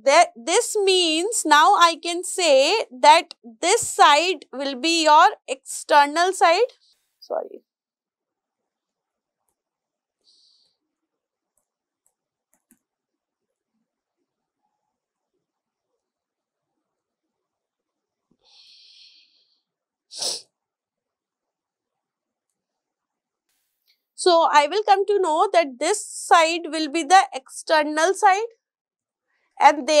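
A woman lectures calmly into a microphone, with pauses.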